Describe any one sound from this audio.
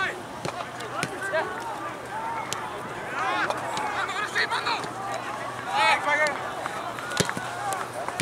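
A soccer ball is kicked with dull thumps.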